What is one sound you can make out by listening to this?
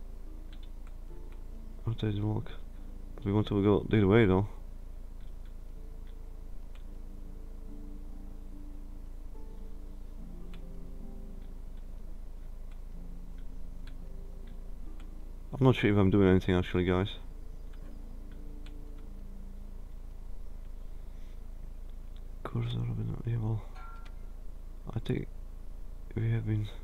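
A metal lock dial clicks as it turns.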